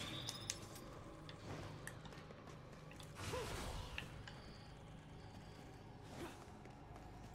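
Footsteps echo in a large stone hall.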